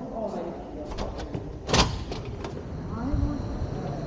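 A glass door clicks and thuds as it is pushed open.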